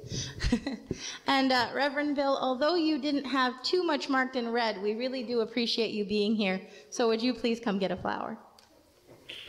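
A woman speaks with animation into a microphone, close and amplified in a reverberant room.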